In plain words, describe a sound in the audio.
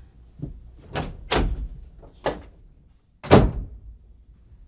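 A door thuds shut.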